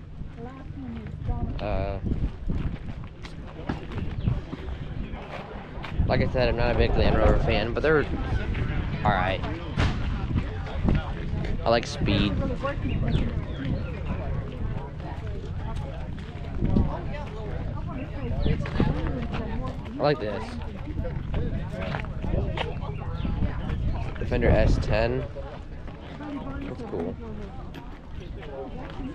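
Several adults chat nearby outdoors.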